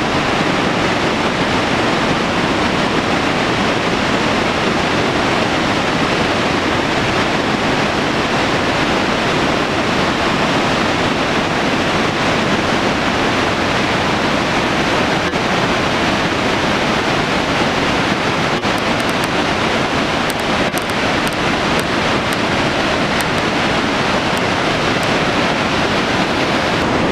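A huge waterfall roars steadily and loudly.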